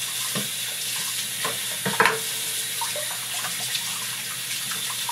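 A metal object clatters against a sink under running water.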